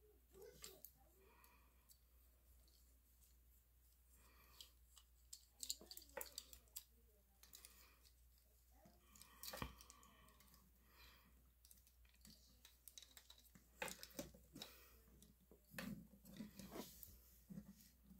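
Plastic action figure parts click and rattle as hands handle them.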